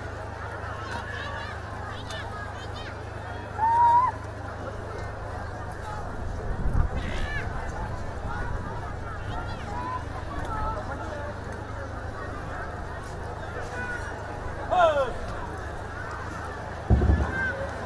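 Two water buffalo bulls shove against each other with locked horns, hooves scuffing on dirt.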